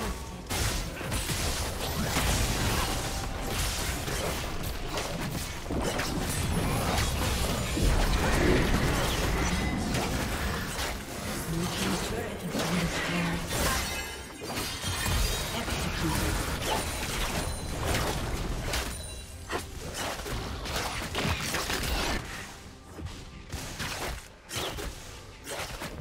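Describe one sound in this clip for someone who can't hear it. Game combat effects clash and burst with sharp hits and whooshes.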